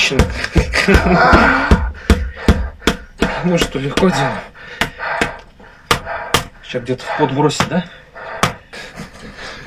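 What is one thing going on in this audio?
Hands slap and pound rapidly on a bare back.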